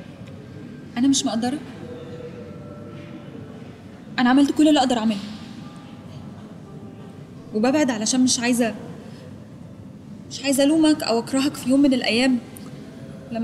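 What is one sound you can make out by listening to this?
A young woman speaks close by in a tearful, emotional voice, in short bursts with pauses.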